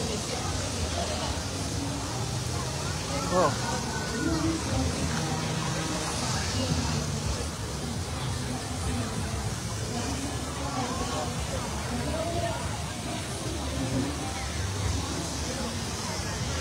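A crowd chatters nearby outdoors.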